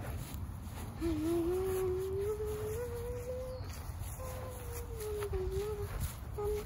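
A young girl hums a long, slowly wavering tune close by.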